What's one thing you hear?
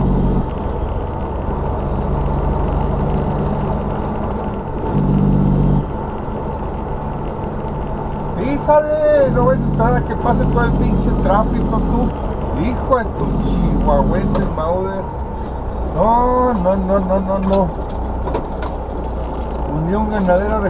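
Wind rushes past a moving vehicle.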